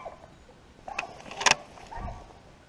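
A rifle's metal parts click as it is handled.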